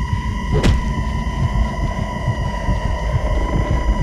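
Fists thud in a brawl.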